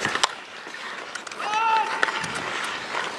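Sticks crack against a ball on ice.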